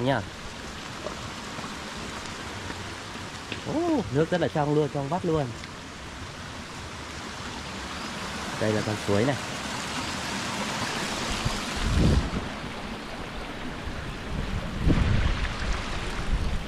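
A shallow stream trickles steadily over rocks.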